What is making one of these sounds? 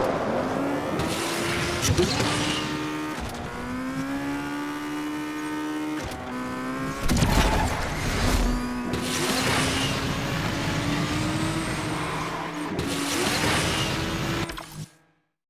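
Nitro boosts whoosh in short bursts.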